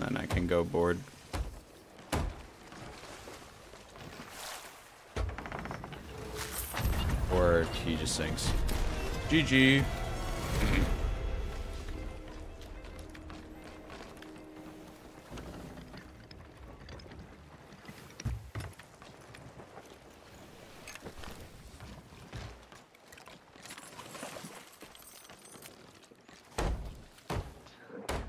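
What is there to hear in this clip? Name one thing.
A hammer knocks on wooden planks.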